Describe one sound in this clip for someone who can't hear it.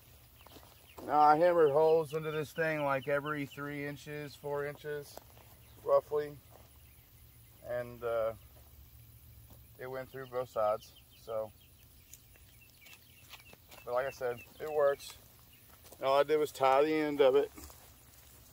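A man talks close by, calmly.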